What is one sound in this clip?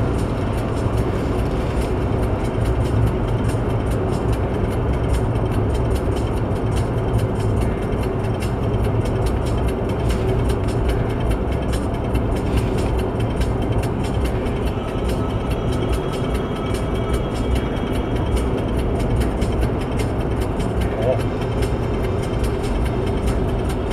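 A car engine drones steadily inside a moving car.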